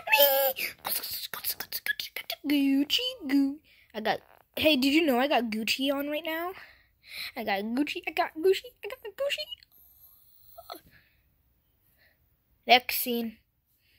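A plush toy rustles softly as a hand squeezes and shakes it.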